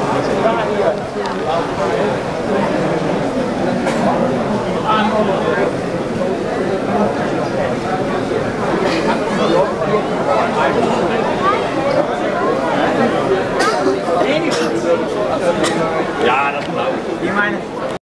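A crowd of people chatter all around in a busy, echoing hall.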